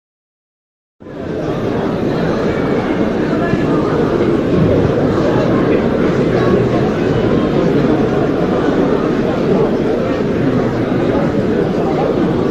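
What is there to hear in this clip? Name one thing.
A crowd murmurs and chatters steadily in a large echoing hall.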